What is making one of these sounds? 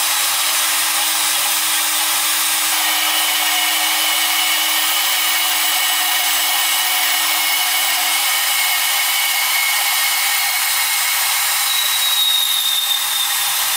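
A band saw hums and whines steadily as it cuts through a metal bar.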